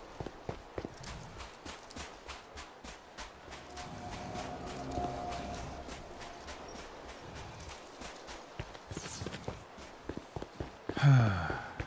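Quick footsteps crunch over dirt and gravel.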